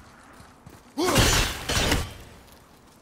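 An axe strikes stone with a loud ringing crash.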